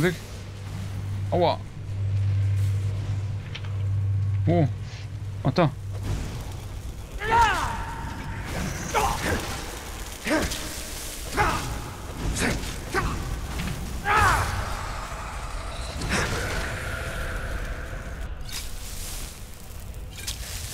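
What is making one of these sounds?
A man talks close to a microphone, with animation.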